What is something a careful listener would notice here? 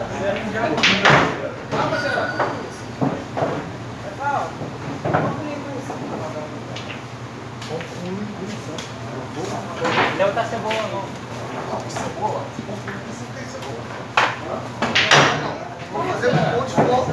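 Pool balls knock against each other and roll across the table.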